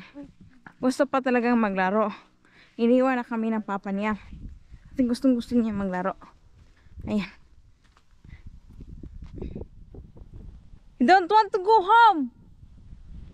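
A young boy talks loudly and playfully close by.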